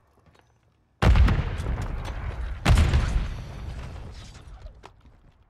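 A grenade explodes with a loud boom that rumbles away.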